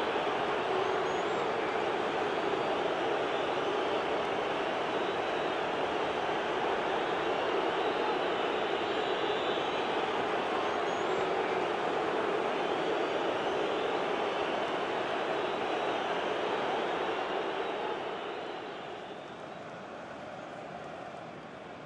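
A large stadium crowd cheers and roars loudly.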